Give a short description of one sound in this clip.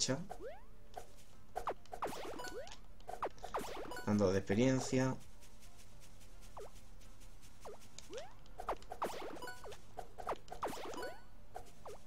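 Short electronic game sound effects blip and chime.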